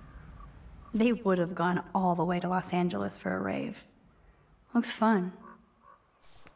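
A young woman speaks calmly and thoughtfully, close by.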